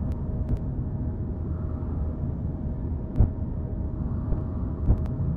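A spacecraft engine hums with a low, steady rumble.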